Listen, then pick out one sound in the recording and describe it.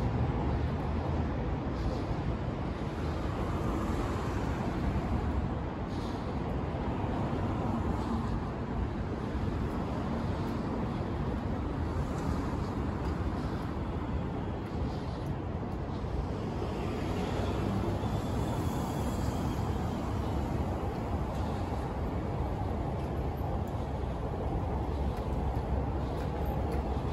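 City traffic hums steadily nearby, outdoors.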